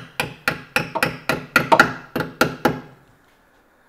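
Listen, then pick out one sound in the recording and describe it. A hammer strikes metal in quick, ringing blows.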